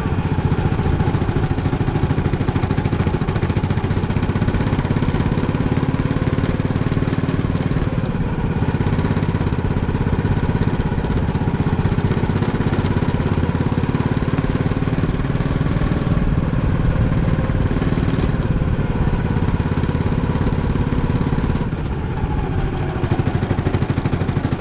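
A racing car's engine roars loudly up close, revving up and down.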